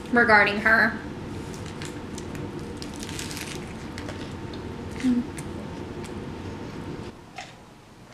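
A young woman crunches and chews food close to a microphone.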